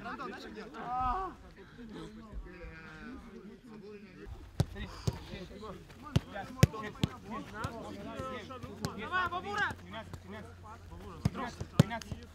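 Young men call out and shout to each other outdoors.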